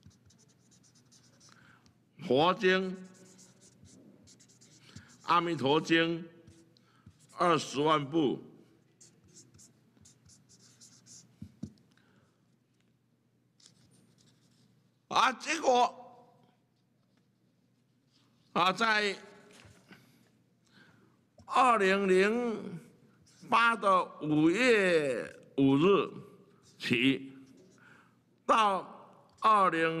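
A felt marker squeaks and scratches across paper.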